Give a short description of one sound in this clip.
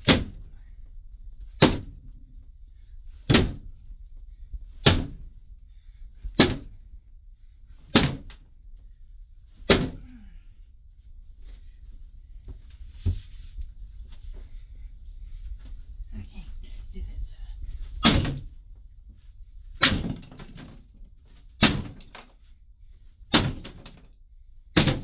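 A sledgehammer pounds heavy blows into a wooden floor at a steady pace.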